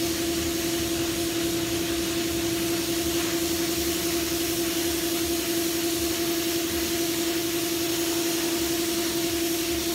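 A spray gun hisses steadily with compressed air.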